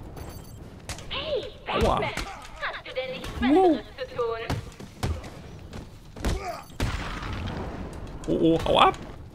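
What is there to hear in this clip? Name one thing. Heavy punches and kicks thud in a brawl.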